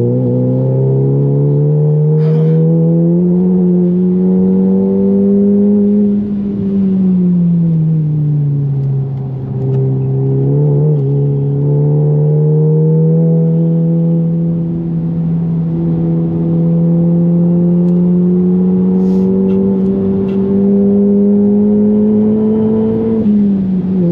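A car engine roars loudly from inside the car, rising in pitch as it speeds up and dropping as it slows.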